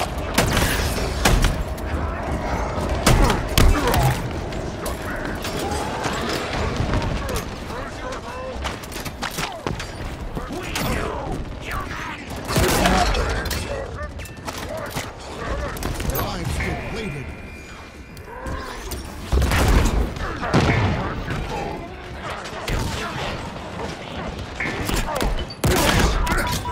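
Gunfire crackles and booms in bursts.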